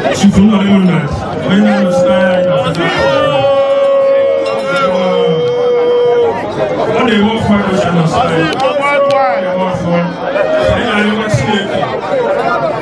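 A man speaks loudly into a microphone through a loudspeaker, outdoors.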